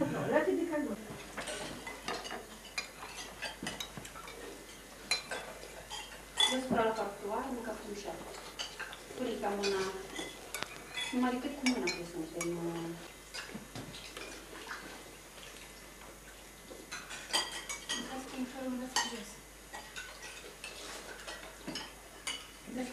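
Young children chatter in a room.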